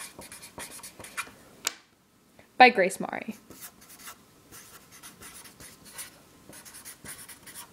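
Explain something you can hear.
A felt-tip marker squeaks and scratches across paper in short strokes.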